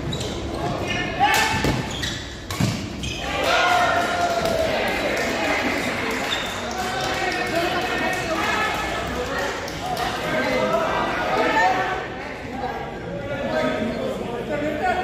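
Shoes squeak on the court floor.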